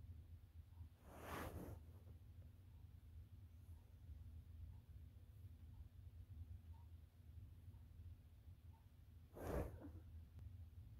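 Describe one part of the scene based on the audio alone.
Fabric rustles briefly close by as a young woman shifts.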